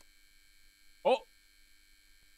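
A young man gives a short, sharp exclamation close to a microphone.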